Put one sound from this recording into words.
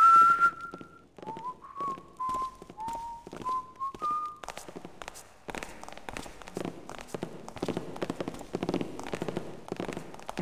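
Heavy footsteps thud on a wooden floor.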